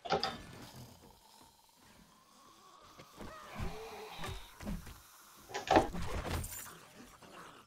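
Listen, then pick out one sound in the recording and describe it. A heavy club thuds against a body.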